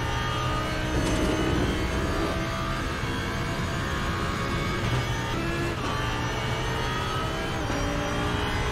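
A racing car engine shifts gears with sudden jumps in pitch.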